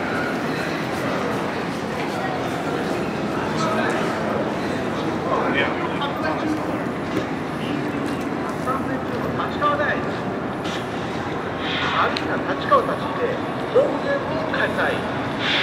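Many people murmur and chatter nearby in a busy outdoor space.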